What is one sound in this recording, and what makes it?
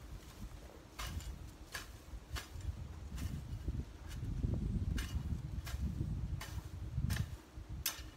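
A hoe scrapes and chops into soil in short, regular strokes.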